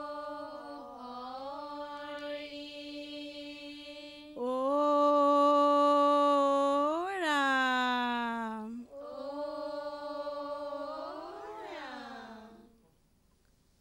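A middle-aged woman sings a slow, drawn-out chant into a microphone.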